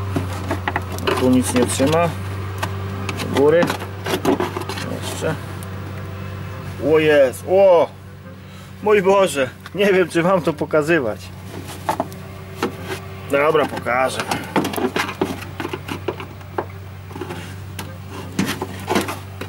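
A screwdriver scrapes and clicks against plastic.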